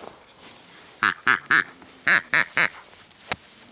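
A rubber toy squeaks loudly several times in quick bursts.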